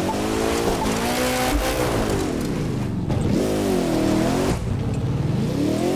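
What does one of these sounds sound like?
A car engine revs up and down loudly.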